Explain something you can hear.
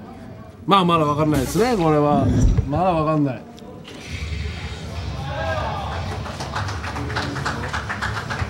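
A dart thuds into a board.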